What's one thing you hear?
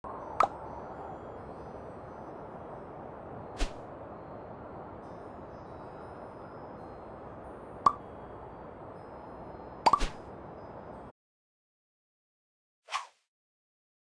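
Short bright chimes sound as menu buttons are tapped.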